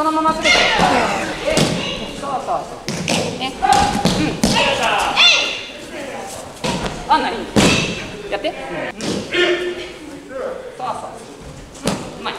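Bare feet thud and slap on padded mats.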